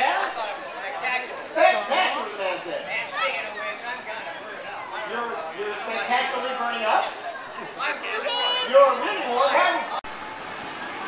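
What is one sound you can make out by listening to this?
A crowd of adults and children chatters outdoors.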